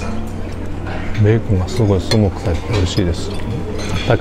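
A knife scrapes and clinks against a plate.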